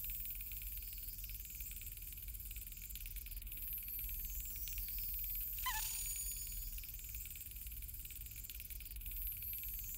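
A metal lockpick scrapes faintly against a lock.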